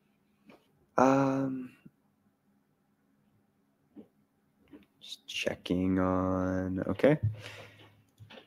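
A man speaks with animation close to a microphone, with long drawn-out vowels.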